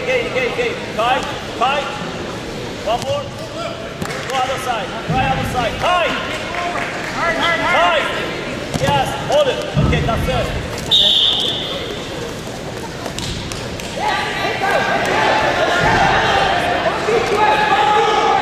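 Spectators shout and cheer in an echoing hall.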